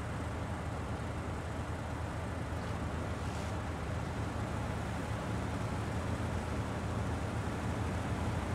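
Tyres crunch through snow.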